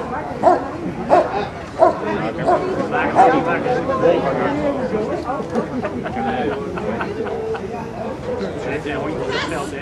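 A man gives commands to a dog in a firm voice, outdoors.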